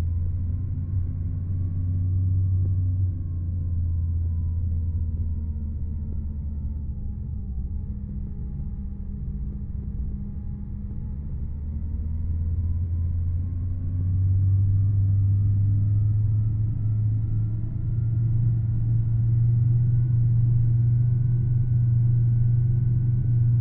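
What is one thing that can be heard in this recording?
A bus engine hums low and steady, dipping and then rising in pitch as it speeds up.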